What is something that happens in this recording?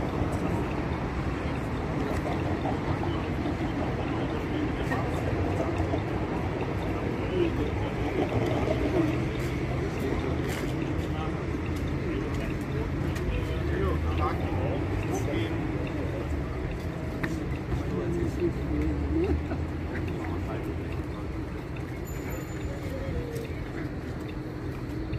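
A truck engine idles nearby with a low rumble.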